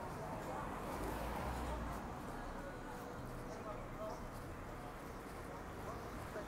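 A car drives past on a street outdoors.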